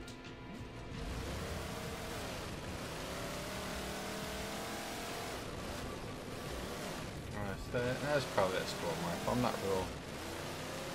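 A vehicle engine hums and revs.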